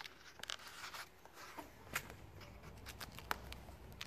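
Plastic film crinkles as it is pulled away.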